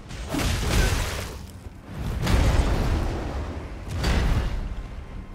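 Swords whoosh and clang in a game fight.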